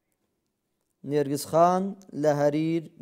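A man chants in a melodic voice close to a microphone.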